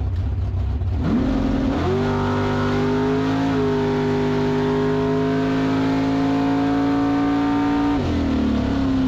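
A race car engine roars to full power and holds a loud, rising howl.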